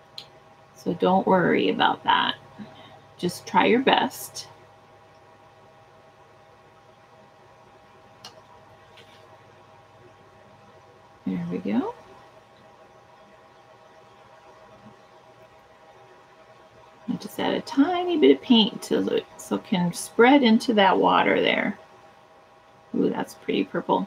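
A woman speaks calmly and clearly into a microphone, with pauses.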